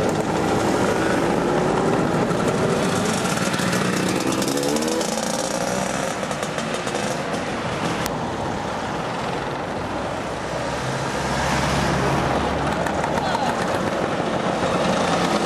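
Scooter engines buzz and whine as they ride past close by.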